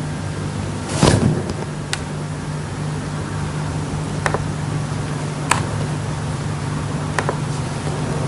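Clicks of a computer mouse or keys sound now and then.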